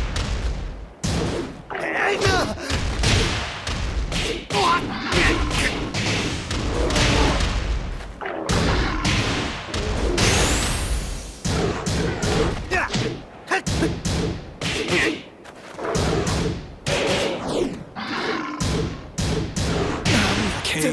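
Heavy punches and kicks land with loud thuds and smacks.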